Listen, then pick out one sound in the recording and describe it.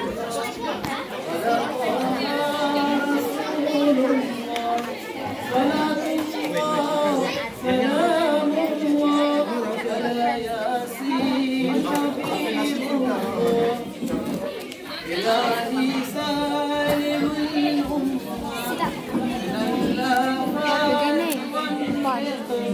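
A crowd of people murmur in the background.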